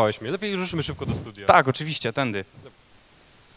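A young man speaks through a microphone.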